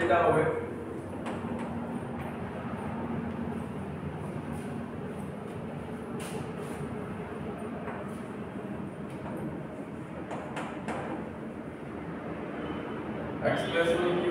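A young man speaks calmly into a handheld microphone in an echoing room.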